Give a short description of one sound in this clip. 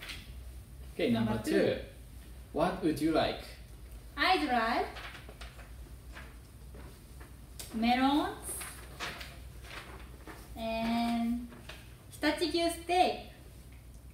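A young woman speaks brightly.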